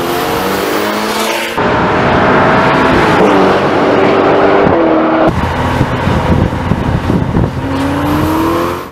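A sports car engine roars loudly, its pitch rising and falling as it speeds past.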